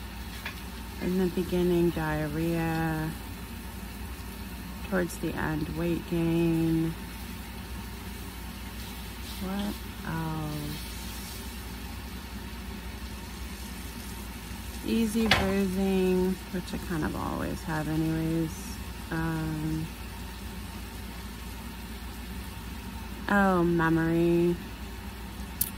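A woman speaks softly and slowly, close to a phone microphone.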